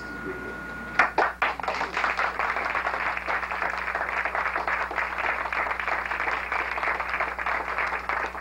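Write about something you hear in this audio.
A man claps his hands in a rapid rhythm.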